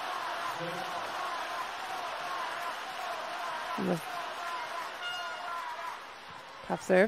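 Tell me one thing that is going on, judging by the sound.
A large crowd cheers and chatters in an echoing hall.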